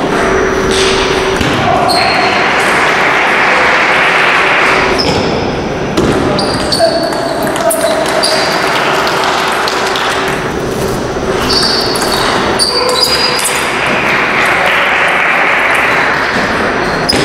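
A ball clicks back and forth off paddles and a table.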